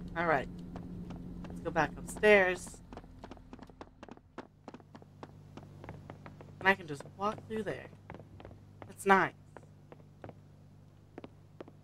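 Footsteps tap steadily.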